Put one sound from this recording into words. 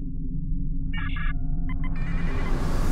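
Electronic menu beeps chime briefly.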